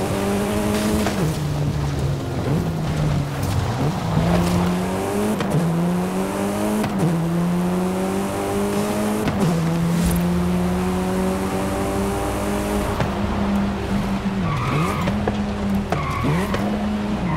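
A car engine roars and revs up and down through gear changes.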